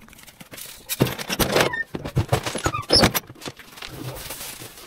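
A plastic bin bumps and rattles as it is handled.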